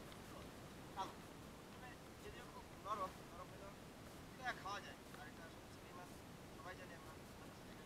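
A young man talks close by, calmly, outdoors.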